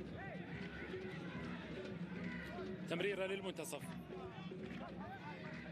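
A stadium crowd chants and murmurs in the distance.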